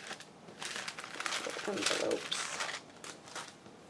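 A glassine envelope crinkles and rustles in hands.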